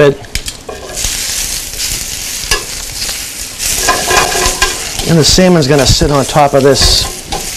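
Metal tongs clink against a pan.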